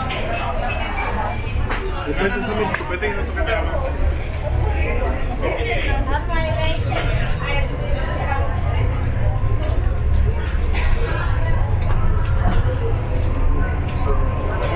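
A ship's engine hums low and steady.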